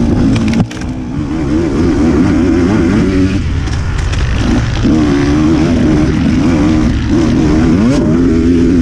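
A dirt bike engine revs up and down loudly, close by.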